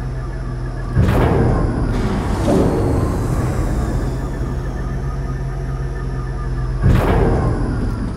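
A heavy metal clank rings out.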